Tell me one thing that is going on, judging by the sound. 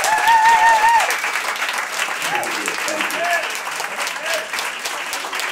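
An audience claps and cheers in a room.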